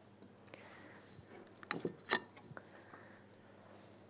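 A fork clinks against a glass bowl.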